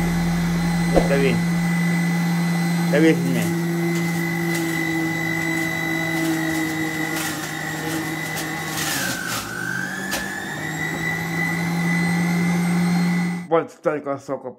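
A juicer motor whirs steadily, its pitch briefly dropping as fruit is pushed in.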